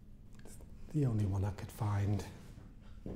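An older man speaks up close.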